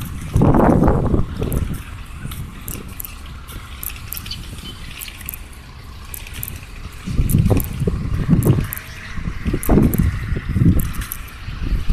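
Traffic passes on a nearby road.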